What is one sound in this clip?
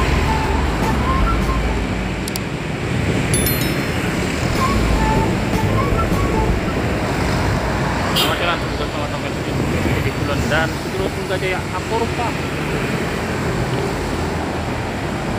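Steady traffic noise rolls along a street.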